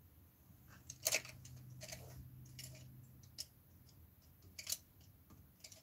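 Paintbrushes rattle and clatter in a cup.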